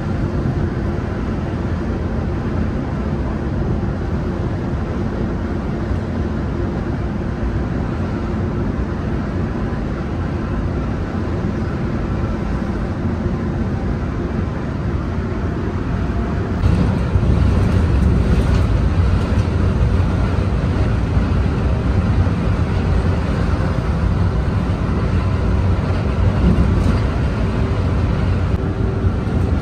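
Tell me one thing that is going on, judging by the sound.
A bus engine rumbles steadily as it drives along a road.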